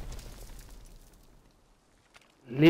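Explosions rumble in the distance.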